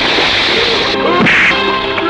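A kick lands with a sharp thud.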